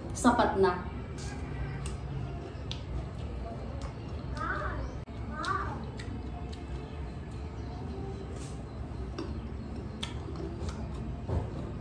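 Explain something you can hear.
A young woman crunches on crisp raw fruit.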